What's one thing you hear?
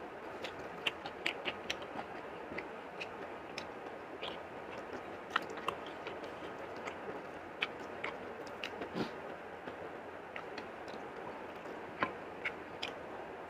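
Fingers squish and tear through soft, oily food close by.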